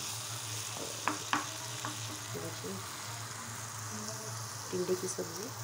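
A spatula scrapes and knocks against a frying pan.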